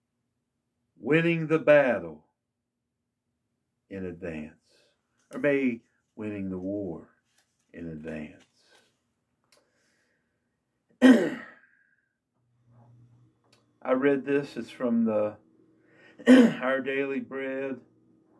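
An elderly man reads aloud slowly and solemnly, close by, with pauses.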